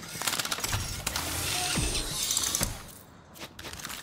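A metal crate clanks open with a bright chime.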